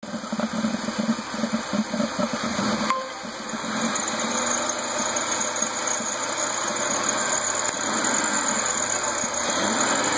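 A hollow plastic housing knocks and creaks as it is handled.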